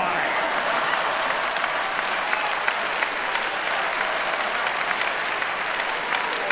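A large audience applauds and cheers in a big hall.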